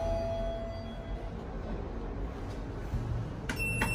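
Sliding steel lift doors rumble shut.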